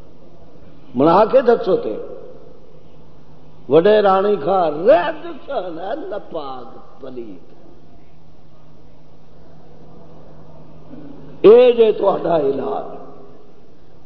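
An elderly man preaches with fervour through a microphone, in short bursts with pauses between.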